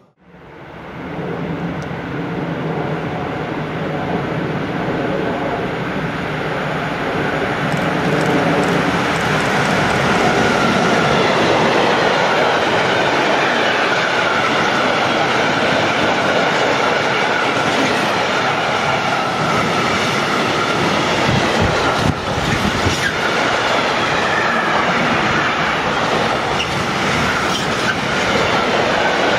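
A freight train approaches and rumbles past loudly on the tracks, close by.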